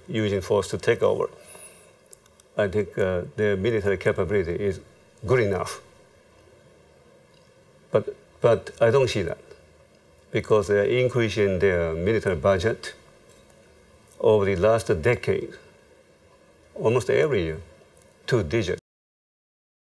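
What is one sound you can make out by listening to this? An elderly man speaks calmly and close by, in short bursts with pauses.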